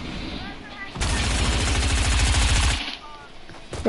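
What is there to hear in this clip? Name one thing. Rapid gunfire rattles in a quick burst.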